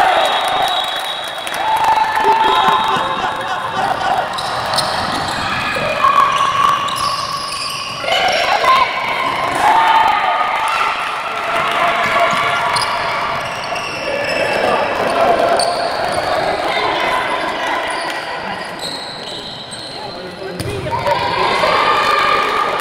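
Spectators shout and chatter in a large echoing hall.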